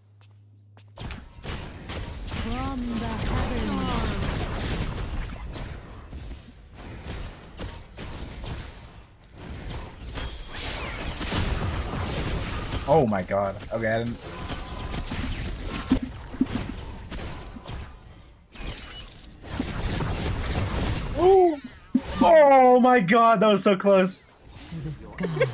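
Game spell blasts and impacts crackle and boom.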